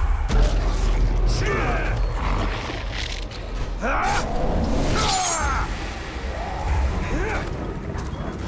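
Heavy blades strike and slash in a fierce fight.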